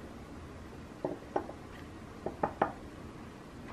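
Cookies clink softly against a ceramic dish.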